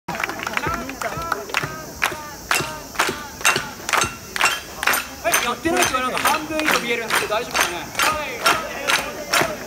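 Large drums are struck in a strong, steady rhythm outdoors.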